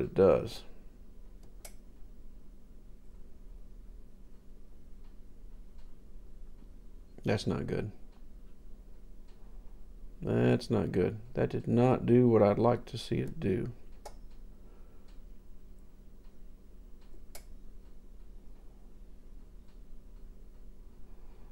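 Buttons on a device click as they are pressed.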